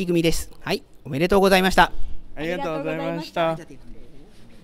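A young man and a young woman speak together cheerfully.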